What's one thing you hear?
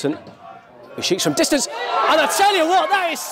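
Spectators cheer and shout outdoors.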